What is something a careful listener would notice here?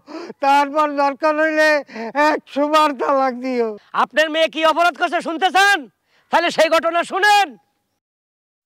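An older man speaks loudly and with animation.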